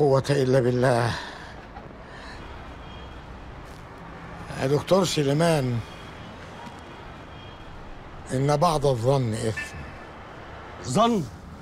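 An elderly man speaks in short, emphatic phrases close by.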